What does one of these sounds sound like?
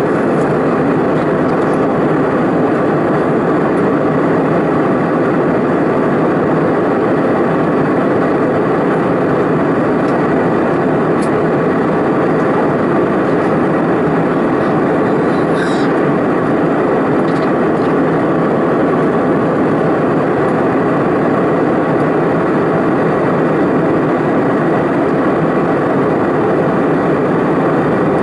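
Jet engines roar steadily inside an airplane cabin in flight.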